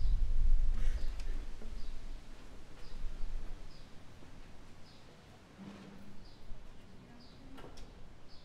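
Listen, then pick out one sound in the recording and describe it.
A piano plays a few soft, scattered notes.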